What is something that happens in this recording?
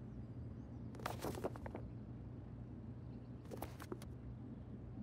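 A paper booklet rustles as it is flipped over.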